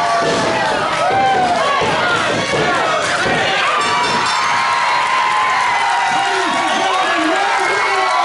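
Wrestlers' bodies thud onto a ring mat.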